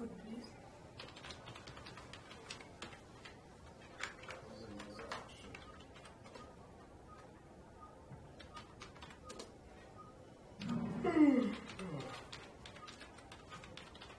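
Keyboard keys click in quick taps.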